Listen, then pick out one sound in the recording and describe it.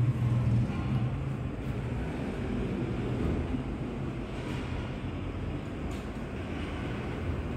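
An elevator door slides open with a low rumble.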